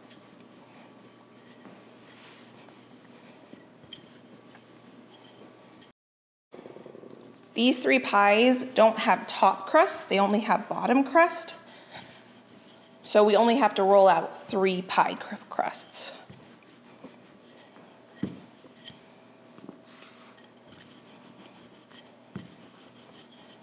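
A rolling pin rolls over dough on a counter.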